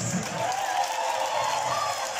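A crowd claps loudly.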